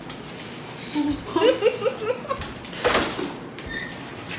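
A girl laughs close by.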